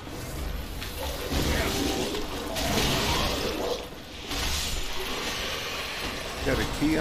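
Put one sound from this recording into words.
Bursts of fiery magic roar and crackle.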